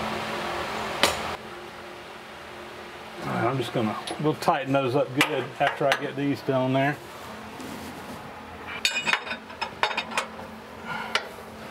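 Metal tools clink and tap against metal.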